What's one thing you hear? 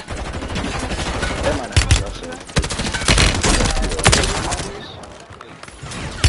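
Gunshots crack in rapid bursts, close by.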